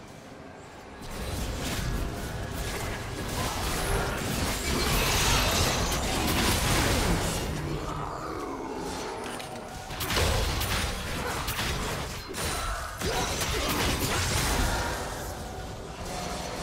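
Game spell blasts and weapon hits crash during a hectic battle.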